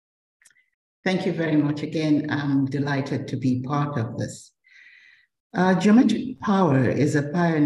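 An older woman speaks calmly and at length over an online call.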